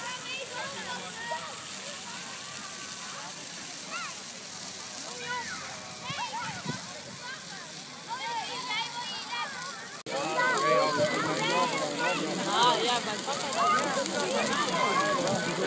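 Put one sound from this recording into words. A large bonfire roars and crackles.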